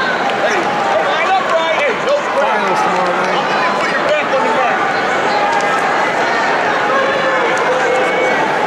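Spectators shout and call out loudly from the stands.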